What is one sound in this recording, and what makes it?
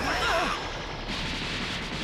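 A crackling burst of energy flares up.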